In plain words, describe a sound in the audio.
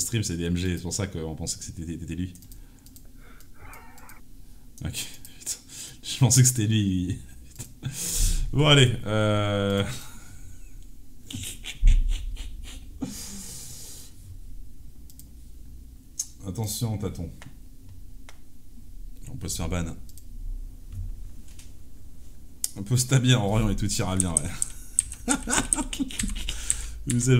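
A young man talks casually into a microphone, close by.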